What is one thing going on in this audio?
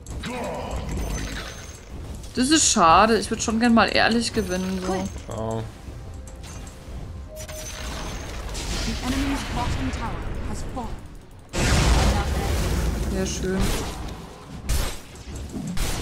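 Magic blasts whoosh and crackle during a fight.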